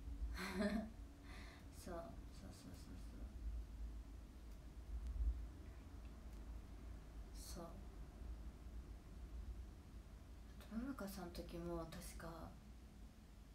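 A young woman speaks softly and casually close to a microphone, in short bursts with pauses.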